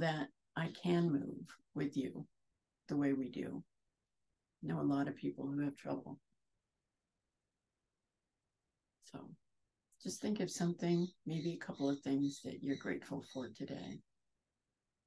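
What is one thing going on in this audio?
A middle-aged woman speaks calmly and gently into a close microphone, pausing often.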